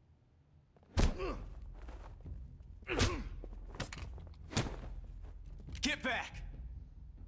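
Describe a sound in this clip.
Loud sharp gunshots ring out several times.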